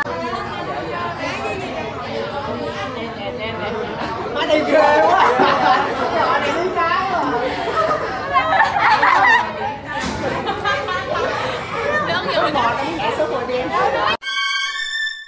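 Teenage girls laugh and chatter close by.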